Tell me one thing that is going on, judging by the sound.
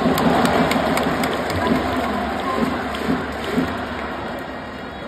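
Fans clap and bang noisemakers in a quick rhythm.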